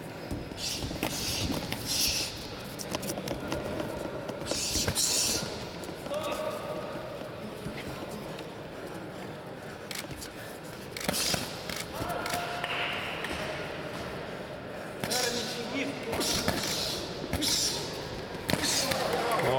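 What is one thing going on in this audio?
Boxing gloves thud against each other in quick bursts, echoing in a large hall.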